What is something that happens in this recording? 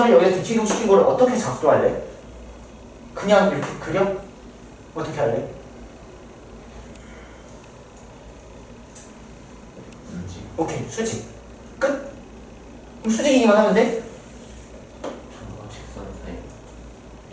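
A young man speaks calmly through a microphone, in short bursts with pauses.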